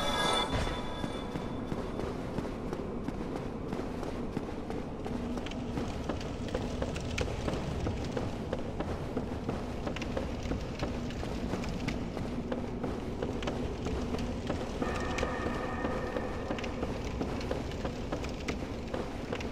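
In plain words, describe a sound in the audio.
Armoured footsteps clank on stone and wooden planks.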